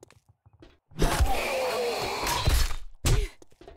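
A club thuds hard against a zombie.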